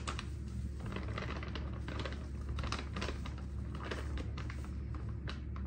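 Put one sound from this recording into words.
A plastic bag crinkles and rustles as it is handled.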